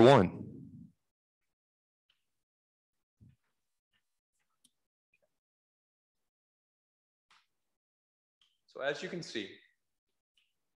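A man speaks close into a microphone.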